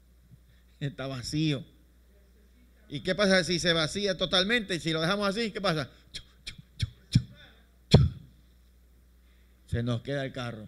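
A man speaks with animation into a microphone over a loudspeaker.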